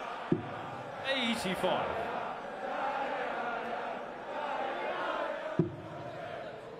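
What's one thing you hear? A large crowd cheers and chants loudly in a big hall.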